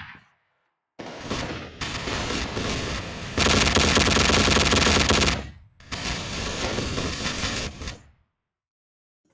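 A machine gun fires long, rapid bursts.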